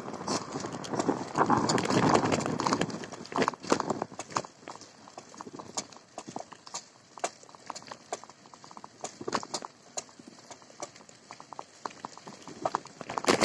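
Bicycle tyres crunch and rattle over a bumpy dirt track.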